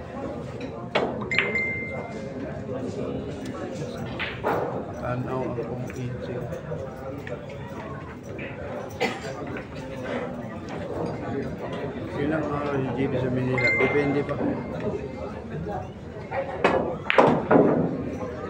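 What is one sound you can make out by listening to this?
A cue strikes a ball and the balls click together sharply.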